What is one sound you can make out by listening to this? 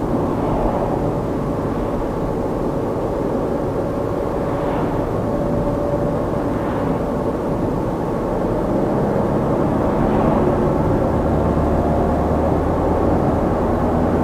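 Tyres roll on asphalt with a steady road noise.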